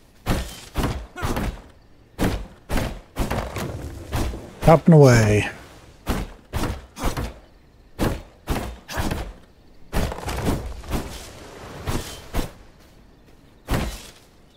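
An axe chops into a tree trunk.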